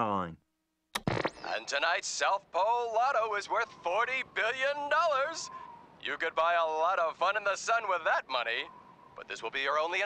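A man speaks with animation through a television speaker.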